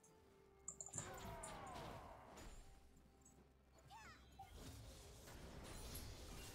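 Game sound effects of fighting and spells play.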